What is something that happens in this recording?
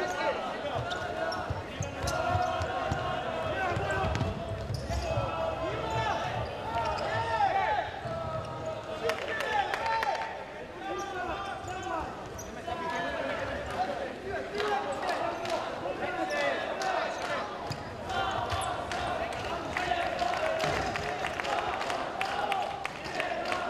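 Sports shoes squeak sharply on a hard indoor court.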